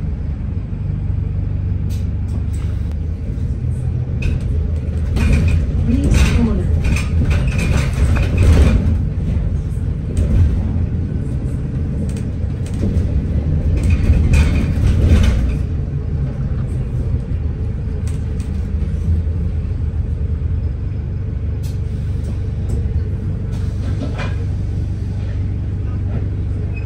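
A bus engine rumbles low and steady inside the cabin.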